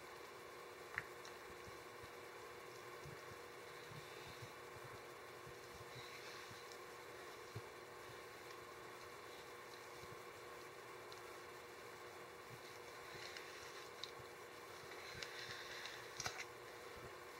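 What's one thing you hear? A stick knocks against the rim of a plastic bucket.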